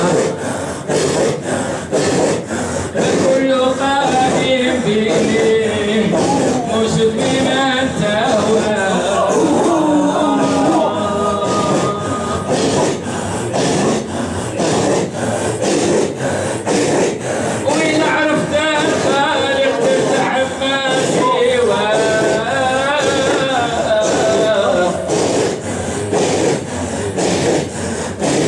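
A group of men chant together in a loud, echoing hall.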